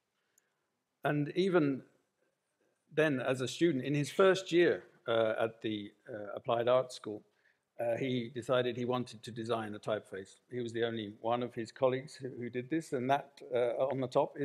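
A middle-aged man speaks calmly and with animation through a microphone.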